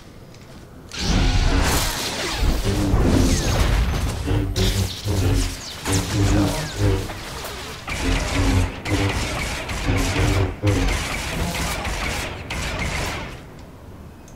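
Blaster shots fire rapidly.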